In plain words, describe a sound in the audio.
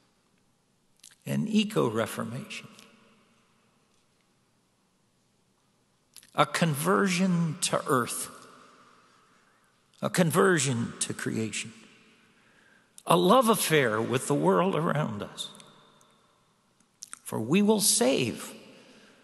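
An elderly man speaks slowly and calmly into a microphone in a reverberant room, with pauses between phrases.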